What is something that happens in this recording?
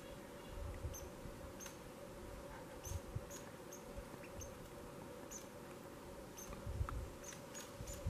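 A squirrel gives short, sharp chirps again and again.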